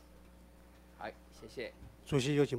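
An elderly man speaks into a microphone in a calm, formal voice.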